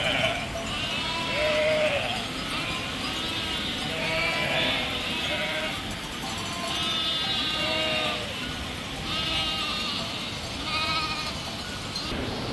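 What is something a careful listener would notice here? A flock of sheep and goats bleats.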